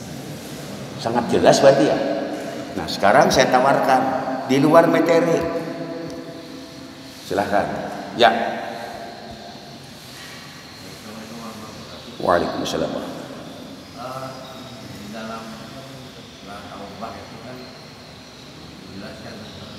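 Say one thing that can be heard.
An elderly man speaks slowly and with emphasis through a microphone and loudspeakers in an echoing hall.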